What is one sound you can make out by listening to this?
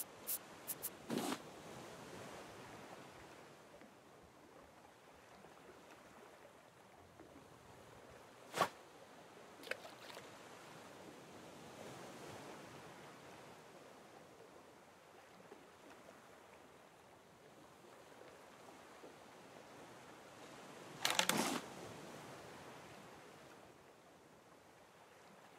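Ocean waves wash softly and steadily.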